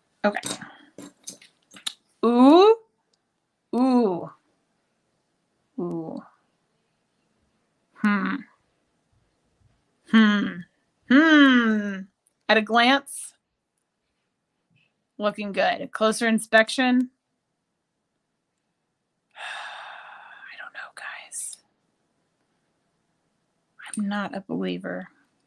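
A woman talks calmly close to a microphone, in short phrases with pauses.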